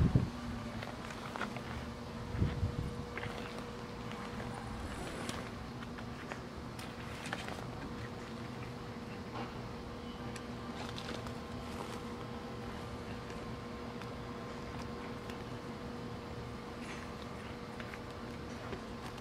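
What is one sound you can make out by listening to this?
Hands rustle and shuffle through a fabric bag.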